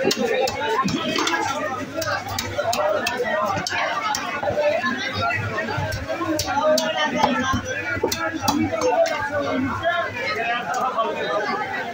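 A cleaver chops through flesh and bone with repeated sharp thuds.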